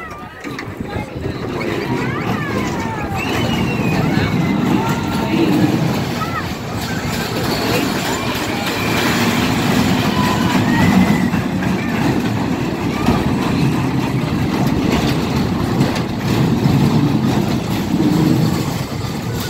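Children scream and shout on a ride.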